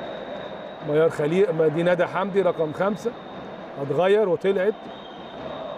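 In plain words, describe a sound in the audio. Young women players shout and cheer in a large echoing hall.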